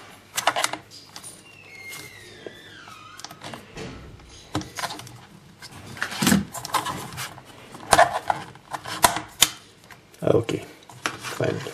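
Plastic clicks and snaps as a cover is pried loose.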